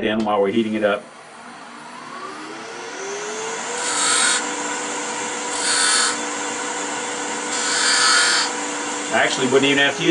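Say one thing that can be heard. A lathe motor spins up and hums steadily.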